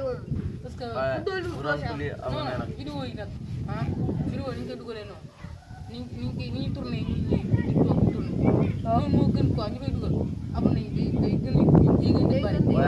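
Teenage boys talk with animation close by.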